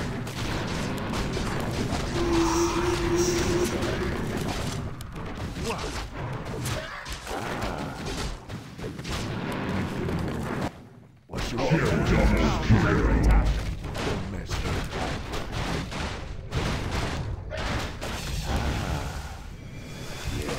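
Weapons clash and spells burst in a hectic fight.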